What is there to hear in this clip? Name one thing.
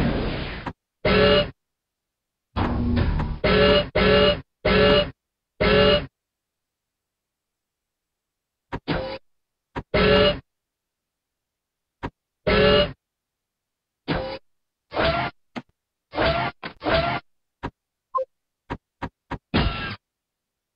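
Short game sound effects play in quick bursts.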